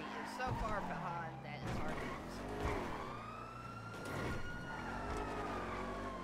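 Car tyres screech while skidding.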